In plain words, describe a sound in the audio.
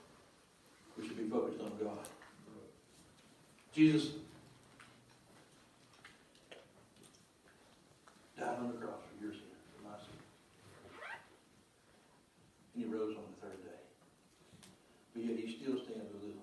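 A man speaks slowly and with emphasis into a microphone, with pauses, in an echoing hall.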